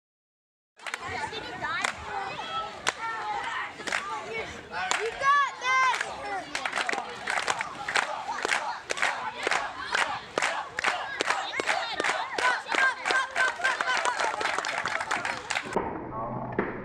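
A crowd of children and teenagers chants and cheers loudly outdoors.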